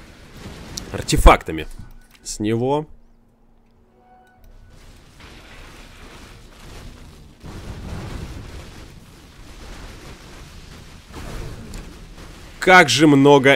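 Magic blasts crackle and clash in a video game battle.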